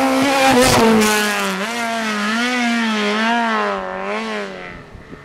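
A rally car engine revs up and down in the distance as the car drives away.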